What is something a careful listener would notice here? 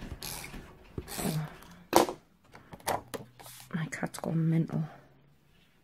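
Paper rustles and slides on a tabletop.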